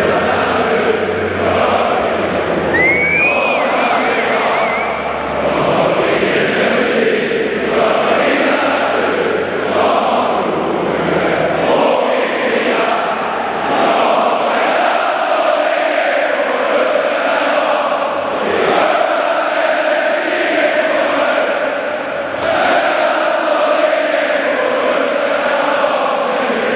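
A large stadium crowd roars and sings loudly, echoing under the roof.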